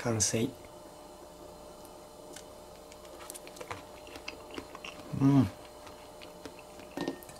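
Fingers squeeze soybean pods, popping beans out with soft clicks.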